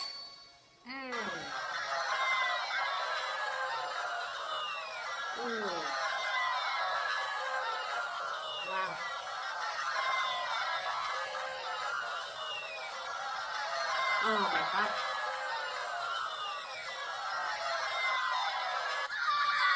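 Upbeat game music plays through a small tablet speaker.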